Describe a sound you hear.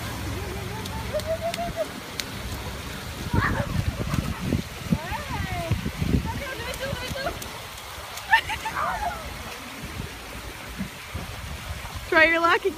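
Children shout and squeal nearby while playing outdoors.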